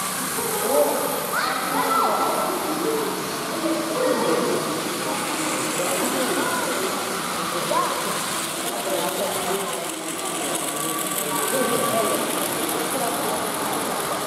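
Toy trains whir and rattle along plastic tracks.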